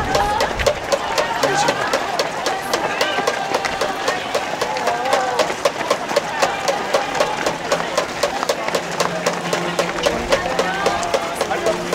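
Many runners' footsteps patter on pavement.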